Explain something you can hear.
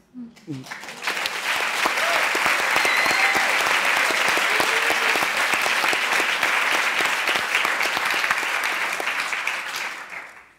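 Applause fills a large hall.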